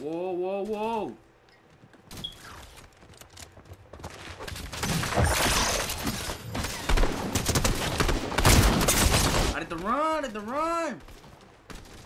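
A young man exclaims with animation close to a microphone.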